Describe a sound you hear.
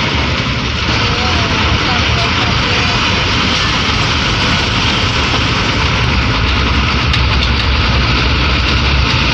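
Wind rushes loudly past an open window.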